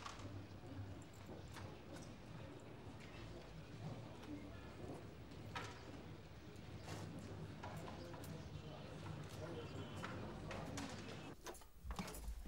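Street crowd noise murmurs outdoors.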